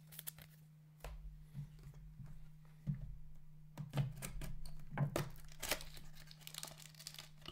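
Cardboard tears as a box is opened by hand.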